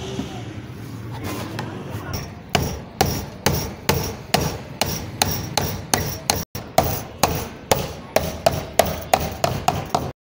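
Hands rattle and scrape a plastic casing.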